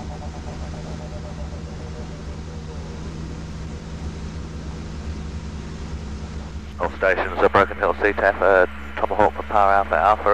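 A propeller engine drones steadily inside a small aircraft cabin.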